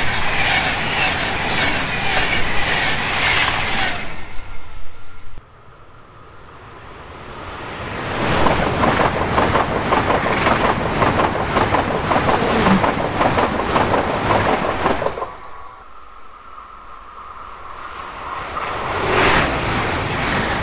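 A fast passenger train rushes past close by, its wheels clattering rhythmically on the rails.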